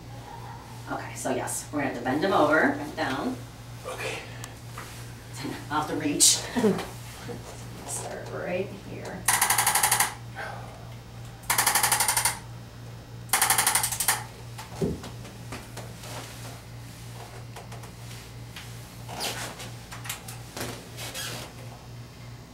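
A woman talks calmly and clearly, close by.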